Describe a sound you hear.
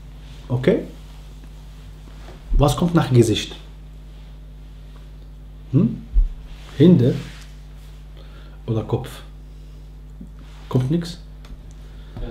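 A man speaks calmly in short phrases close to the microphone, with pauses between them.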